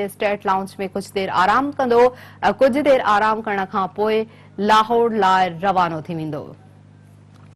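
A young woman reads out the news clearly through a microphone.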